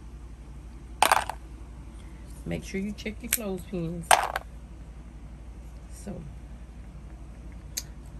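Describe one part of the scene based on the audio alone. Wooden clothespins clack against each other as they are handled.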